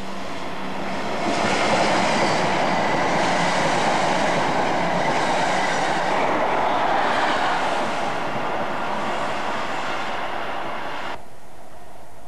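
A passenger train roars past close by with a loud rushing rumble.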